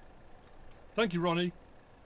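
An older man says a short word loudly into a microphone.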